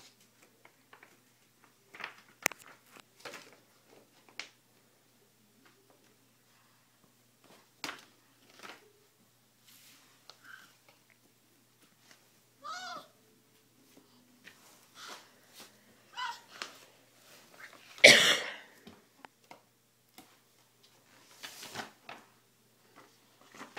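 Cardboard books rattle and knock in a box.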